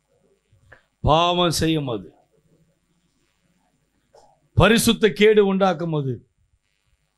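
A man speaks forcefully into a microphone, in short emphatic bursts.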